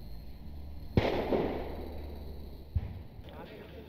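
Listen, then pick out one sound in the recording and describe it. Distant explosions boom and rumble across open ground.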